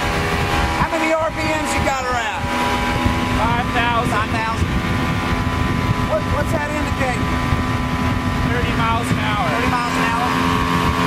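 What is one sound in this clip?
A young man talks loudly over the engine.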